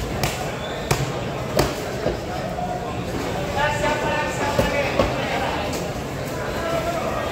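A busy crowd murmurs in the background.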